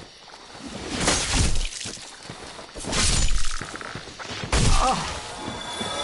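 Heavy blows thud as a large creature is struck.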